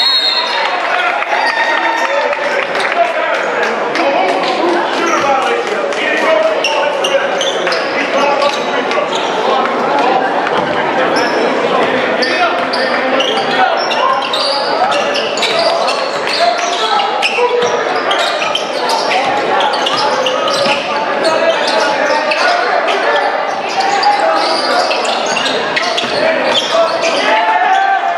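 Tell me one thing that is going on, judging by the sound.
A crowd of spectators chatters and cheers throughout a large echoing gym.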